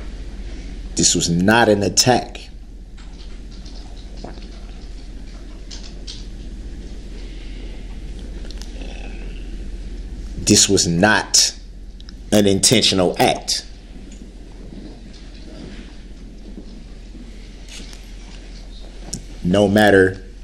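A man speaks forcefully in short bursts.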